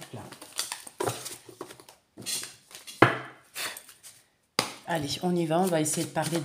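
Playing cards rustle and flick as they are shuffled.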